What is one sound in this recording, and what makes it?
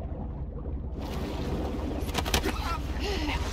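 Water splashes as a swimmer climbs out.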